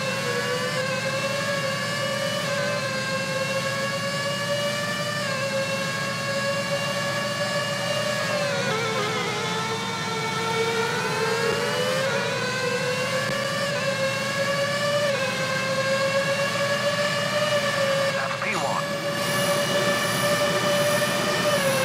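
A racing car engine whines loudly, rising in pitch and dropping back with each gear change.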